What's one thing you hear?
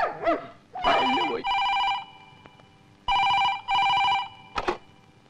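A telephone rings in repeated bursts.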